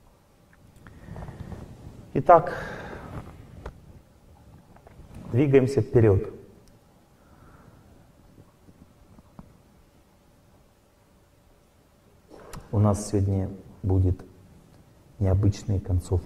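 A middle-aged man speaks calmly into a microphone in a large hall, with pauses.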